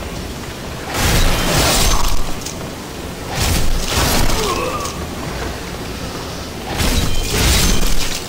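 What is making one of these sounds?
Wooden crates smash and clatter loudly.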